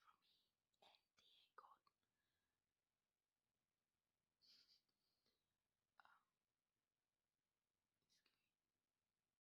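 A young woman speaks softly and casually, close to a phone microphone.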